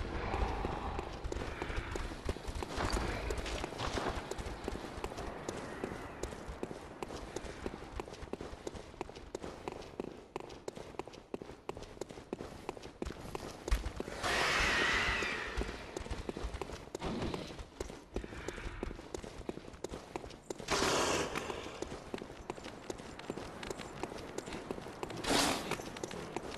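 Quick footsteps run on stone.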